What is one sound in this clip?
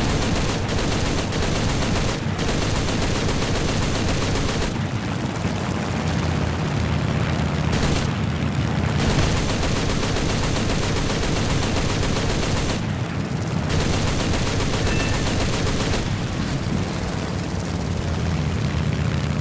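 A propeller plane's engine roars steadily.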